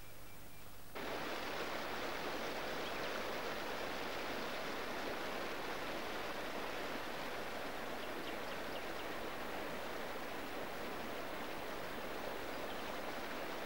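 A stream rushes and gurgles over stones.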